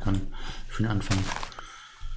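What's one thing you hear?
Dirt crunches as a block is dug and breaks apart.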